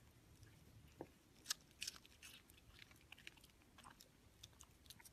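A cat chews and crunches on a piece of food up close.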